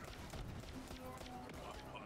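A gun fires rapid shots with sharp bursts.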